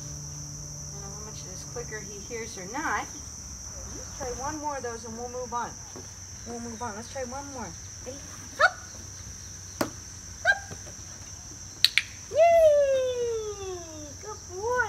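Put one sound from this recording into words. A woman talks to a puppy in a bright, encouraging voice, close by.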